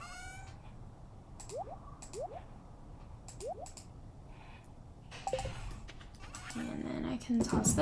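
Short interface clicks tick repeatedly.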